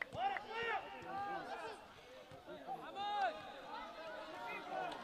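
Young men shout and call to each other outdoors across a football pitch.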